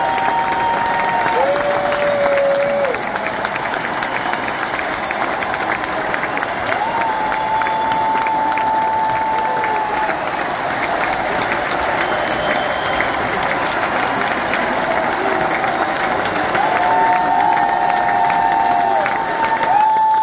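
Music plays loudly through arena loudspeakers.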